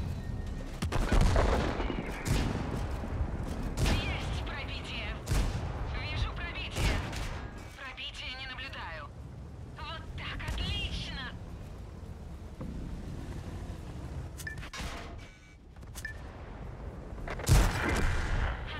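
Tank guns fire with loud booming blasts.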